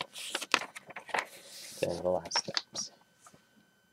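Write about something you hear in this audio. A paper booklet rustles as it is handled.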